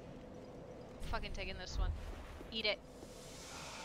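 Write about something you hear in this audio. A young woman speaks with animation close to a headset microphone.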